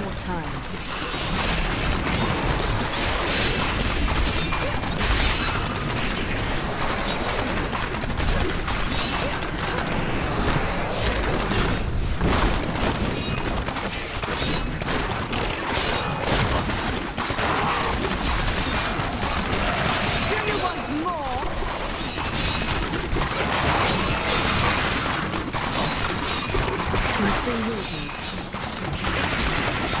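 Magic spells crackle and burst in rapid succession.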